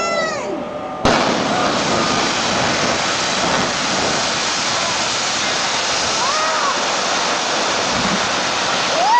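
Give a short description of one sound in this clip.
A building collapses with a long, heavy roar.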